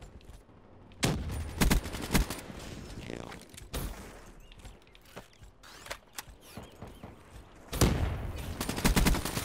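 Gunfire rattles in short, loud bursts.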